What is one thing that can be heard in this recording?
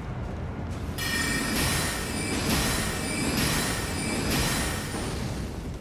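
A magic spell whooshes and shimmers loudly.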